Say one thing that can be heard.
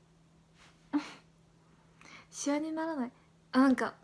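A young woman giggles.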